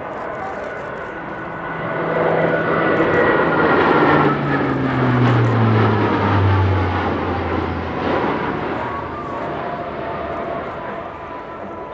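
A propeller plane drones overhead, growing into a loud roar that drops in pitch as it passes.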